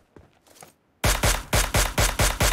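A scoped rifle fires a rapid string of shots.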